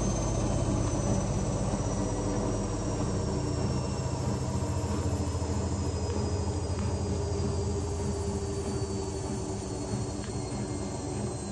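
Water sloshes inside a washing machine.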